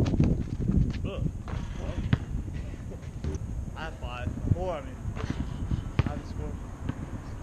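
Young men call out to each other at a distance outdoors.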